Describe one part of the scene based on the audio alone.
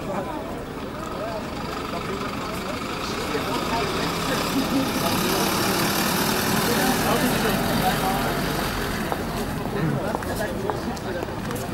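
A bus engine idles close by.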